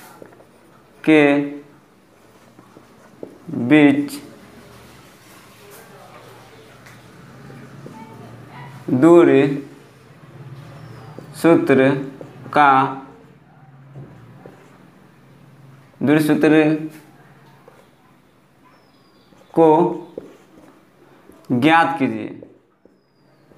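A young man speaks in short, drawn-out phrases nearby, pausing between them.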